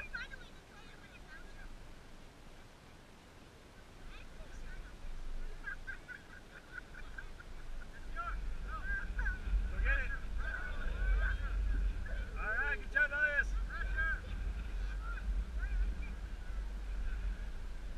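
Children shout and call out in the distance outdoors.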